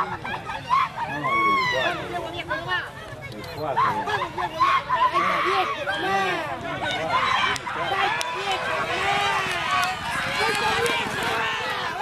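A crowd of spectators shouts and cheers outdoors.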